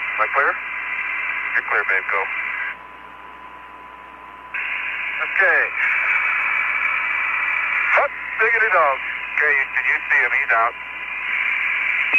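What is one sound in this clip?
Radio static hisses steadily, dropping away briefly.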